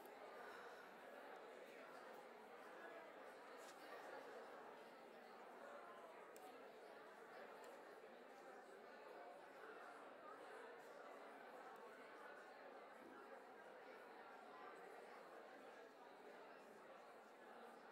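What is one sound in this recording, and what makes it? A young woman speaks calmly through a microphone in a large echoing hall.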